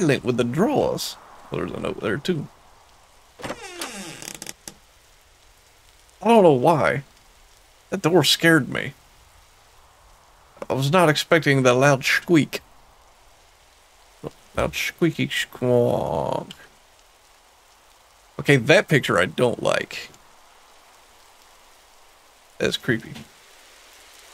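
A man speaks into a close microphone in short bursts with pauses.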